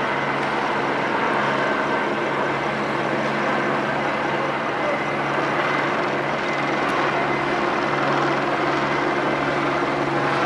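A crowd murmurs and shouts outdoors.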